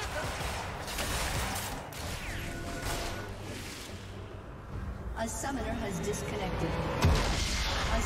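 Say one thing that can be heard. Spells and attacks whoosh and crackle in a game.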